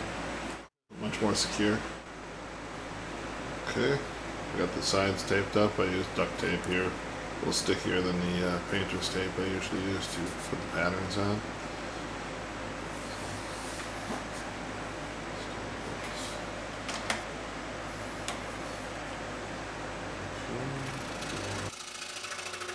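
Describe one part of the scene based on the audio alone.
A scroll saw motor hums steadily.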